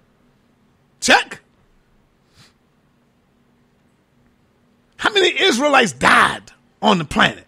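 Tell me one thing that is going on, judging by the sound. A man speaks with animation through a microphone, in short bursts.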